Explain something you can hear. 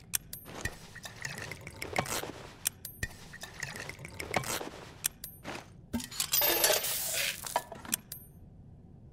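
Short, crisp menu clicks tick now and then as selections change.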